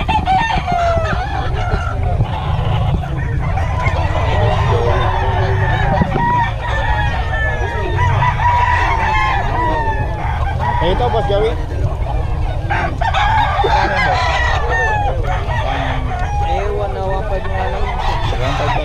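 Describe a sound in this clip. A crowd of men talk loudly nearby outdoors.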